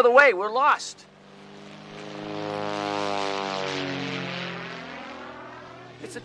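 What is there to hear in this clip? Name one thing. A small propeller plane drones overhead, its engine rising and falling as it passes.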